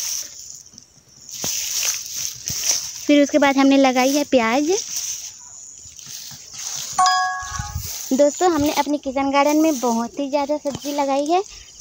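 Tall grass rustles and swishes as someone pushes through it.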